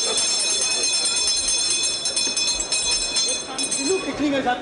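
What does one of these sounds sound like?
A hand bell rings loudly.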